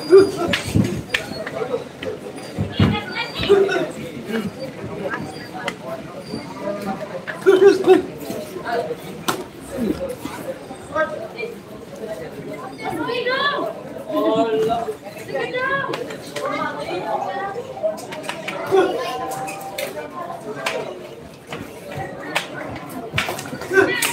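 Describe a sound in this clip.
Children and adults at ringside call out and shout.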